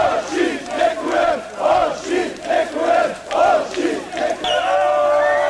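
A large crowd of fans chants loudly in rhythm outdoors.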